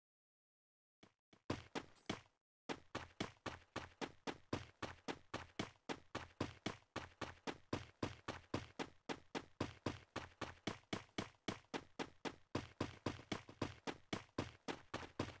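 Quick footsteps thud on grass in a steady running rhythm.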